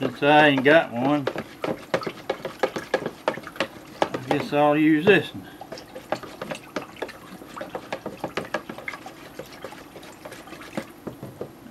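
A plastic spoon scrapes and taps inside a plastic jug.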